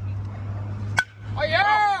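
A metal bat cracks against a ball.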